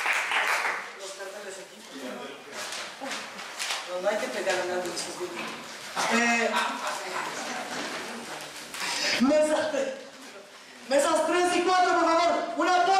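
A woman speaks with animation into a microphone, heard through loudspeakers in a large room.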